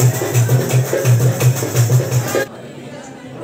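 Music plays loudly with a steady beat.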